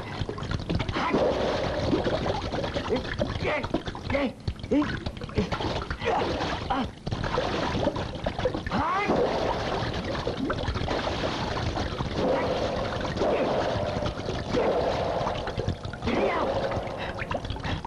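A man grunts and cries out with effort.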